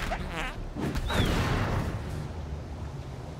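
A fire bursts into flame with a loud whoosh.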